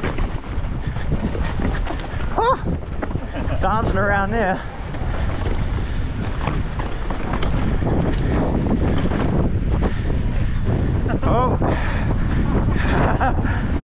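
Wind rushes loudly over a moving rider.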